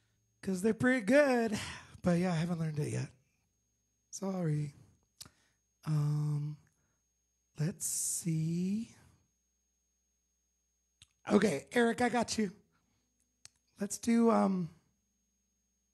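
A man sings into a microphone close by.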